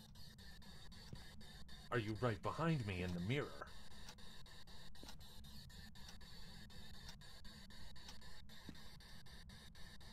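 A handheld radio hisses and crackles with static.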